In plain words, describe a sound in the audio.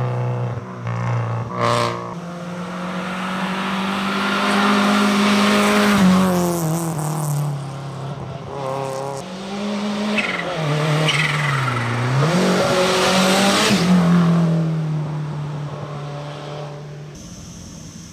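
A rally car engine roars loudly as the car accelerates past up close and fades away.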